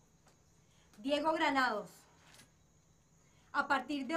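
A young woman speaks sharply and close by.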